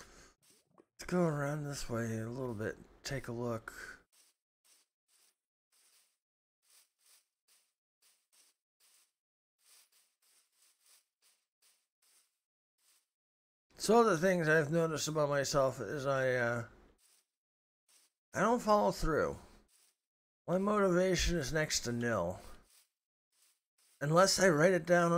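A middle-aged man talks with animation into a close microphone, in bursts with pauses.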